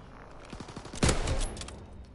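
A rifle fires a single loud, sharp shot up close.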